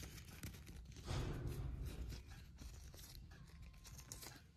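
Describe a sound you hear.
Crisp cauliflower leaves snap and tear by hand.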